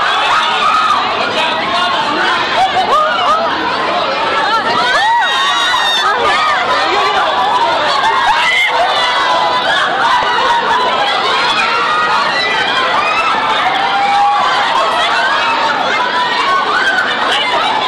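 A dense crowd of young women scream and shout excitedly close by.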